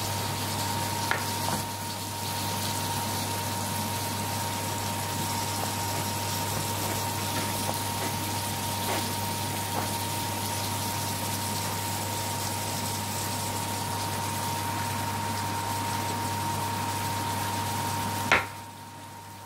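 Onions sizzle softly in a hot pan.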